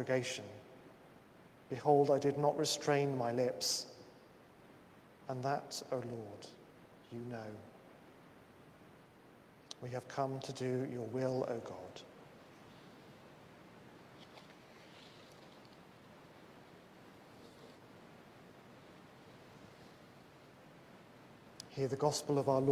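A man speaks slowly and solemnly, in a room with a light echo.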